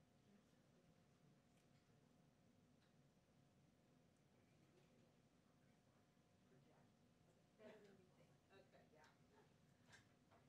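A small crowd murmurs quietly in a room.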